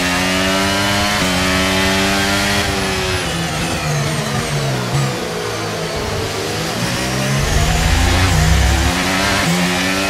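A racing car engine screams at high revs, its pitch dropping with each gear change.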